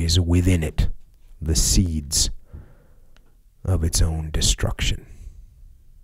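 A man reads aloud calmly and close to a microphone.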